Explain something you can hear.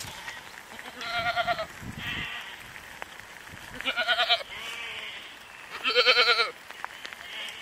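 A goat bleats loudly close by.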